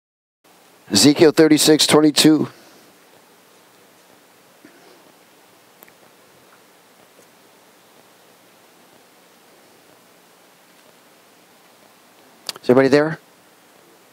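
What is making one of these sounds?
A middle-aged man speaks calmly through a headset microphone.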